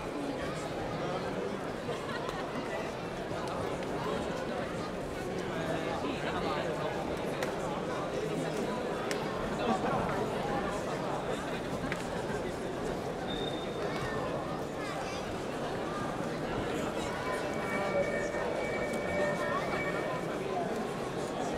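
Several men and women talk nearby.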